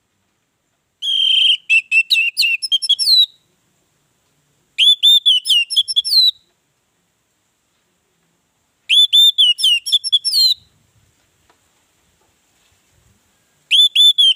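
An orange-headed thrush sings in short bursts of varied whistles.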